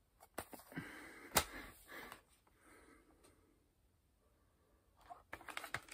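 A plastic disc case clicks and rattles in a man's hands, close by.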